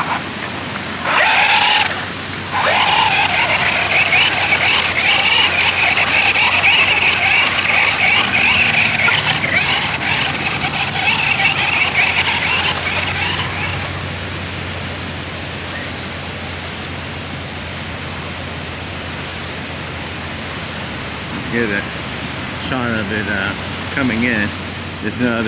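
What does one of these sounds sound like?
Waves wash onto a beach in the distance.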